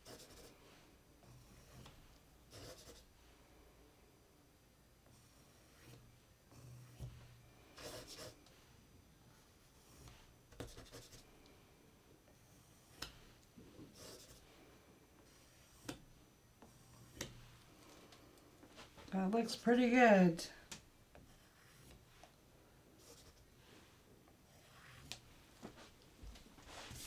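A stick scrapes lightly across a wet painted surface.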